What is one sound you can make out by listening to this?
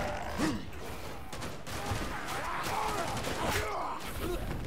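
Heavy metal blows thud into flesh.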